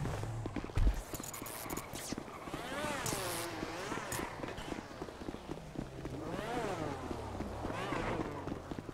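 Quick footsteps run on pavement.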